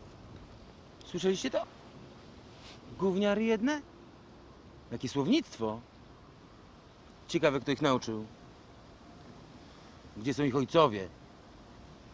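Men talk calmly nearby, in short exchanges.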